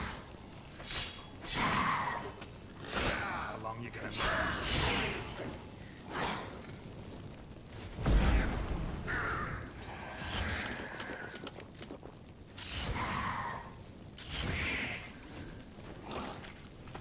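Swords swing and clash in a fight.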